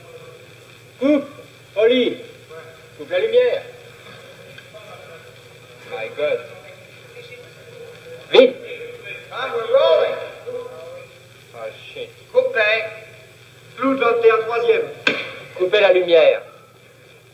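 A man speaks in short, halting bursts.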